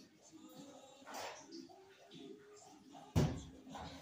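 Footsteps thud across a hard floor nearby.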